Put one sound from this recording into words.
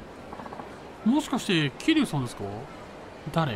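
A man speaks with surprise, close by.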